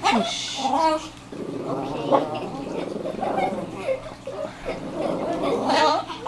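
Small dogs growl playfully.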